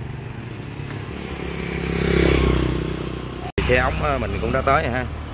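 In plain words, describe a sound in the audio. A motorbike engine hums as it passes close by.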